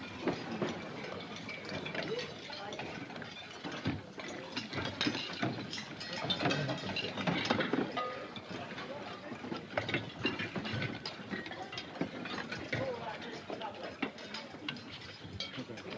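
Dishes and cups clatter.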